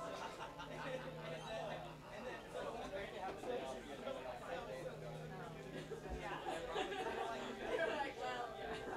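Men talk and chatter loudly nearby.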